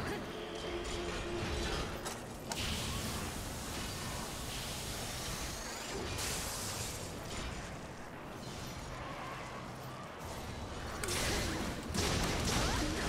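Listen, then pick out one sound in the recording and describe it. A large blade slashes and clangs against a monster's hide.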